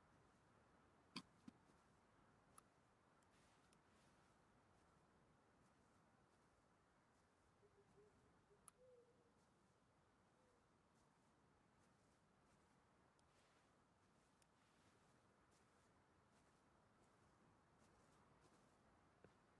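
Footsteps fall softly on grass and rock.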